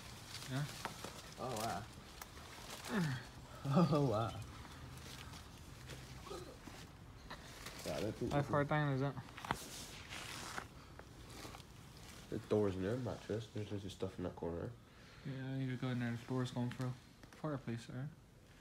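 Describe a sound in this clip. A young man talks quietly close by.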